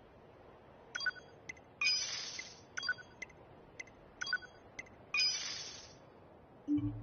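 Short electronic menu chimes beep in quick succession.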